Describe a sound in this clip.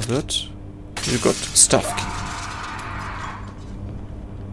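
A short chime rings out as a key is picked up.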